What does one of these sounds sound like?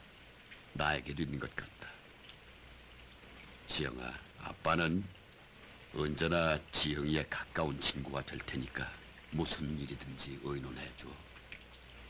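A middle-aged man speaks softly and pleadingly, close by.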